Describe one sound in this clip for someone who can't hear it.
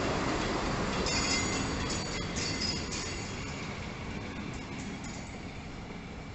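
Train wheels squeal and clatter on the rails.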